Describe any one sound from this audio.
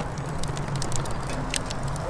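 Metal grill racks clink together.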